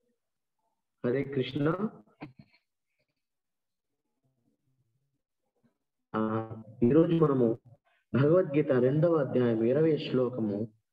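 A man speaks calmly over an online call.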